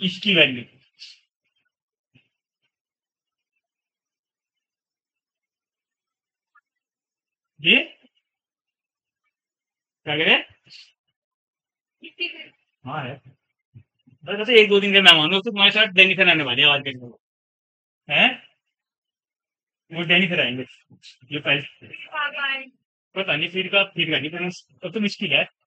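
A man speaks calmly in pauses, close by.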